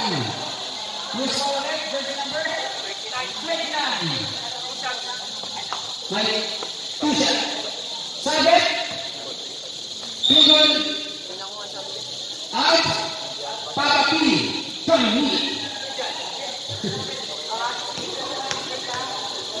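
A crowd of young people chatters and shouts in a large echoing hall.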